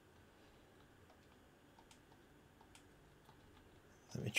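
Buttons on a handheld game console click softly.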